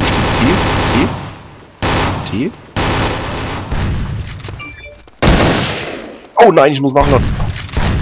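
Rifle shots bang loudly, with ringing echoes.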